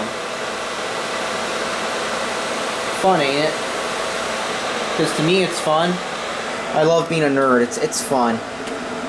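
Computer cooling fans whir steadily.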